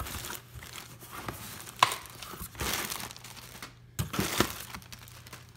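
A cardboard box flap scrapes and bumps.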